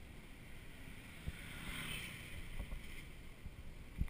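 A motor scooter passes by close.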